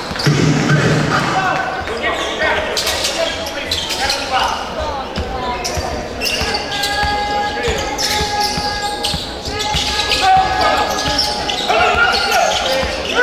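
A basketball bounces on a hard court as a player dribbles.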